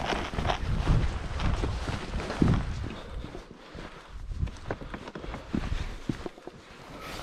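Footsteps crunch over grass and loose rocks.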